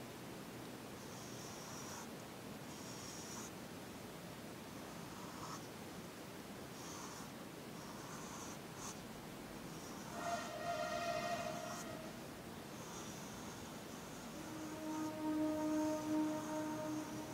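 A pencil scratches on paper in short strokes.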